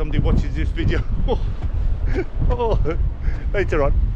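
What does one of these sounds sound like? A middle-aged man laughs loudly.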